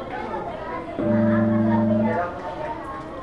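An electric guitar plays a held note.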